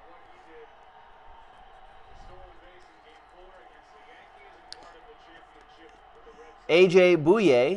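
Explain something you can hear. Trading cards rustle and slide as hands sort through them.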